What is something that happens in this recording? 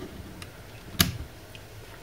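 A small plastic switch clicks.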